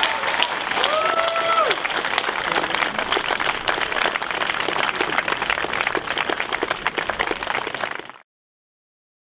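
A large crowd claps and cheers outdoors.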